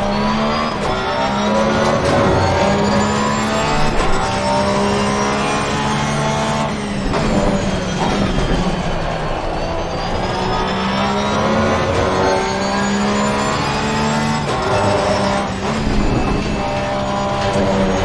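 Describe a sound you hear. Gear shifts crack sharply between revs.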